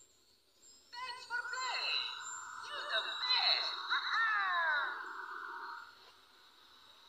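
A handheld game console plays a bright electronic startup jingle.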